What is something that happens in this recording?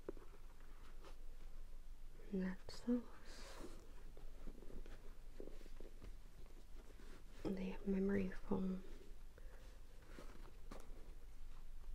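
A pair of sneakers rustles and knocks softly as they are handled close by.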